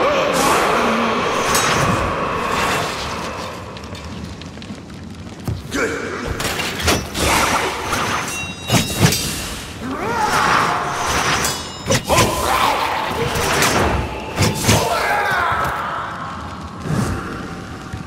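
Swords clash and ring sharply.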